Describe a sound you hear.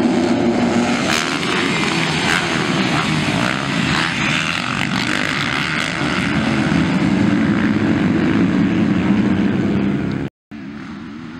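Dirt bike engines roar and rev loudly.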